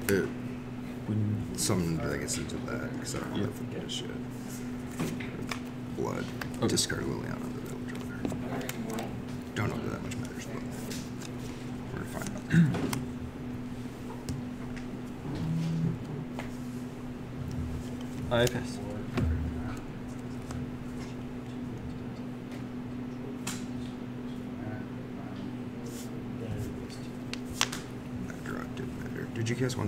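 Playing cards tap and slide on a table mat.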